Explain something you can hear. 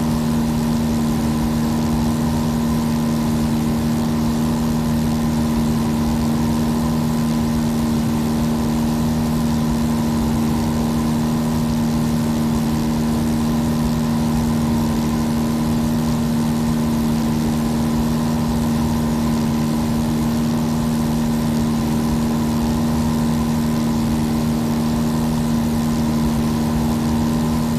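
A small propeller plane's engine drones steadily throughout.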